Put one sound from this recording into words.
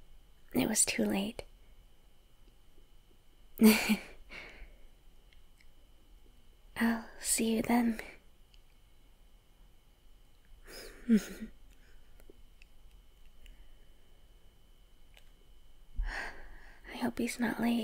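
A young woman speaks softly in short phrases, with pauses between them.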